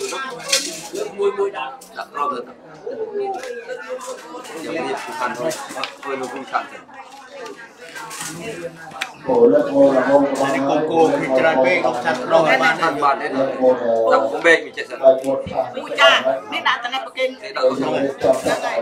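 Dishes and spoons clink.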